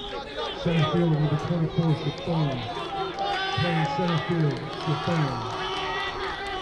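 Young men chant loudly in rhythm from the sidelines.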